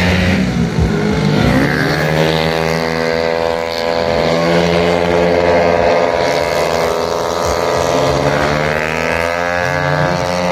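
Racing motorcycle engines rev loudly and whine past, rising and falling in pitch.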